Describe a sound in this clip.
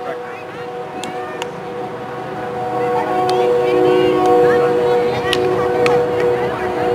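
Hockey sticks clack against a ball outdoors.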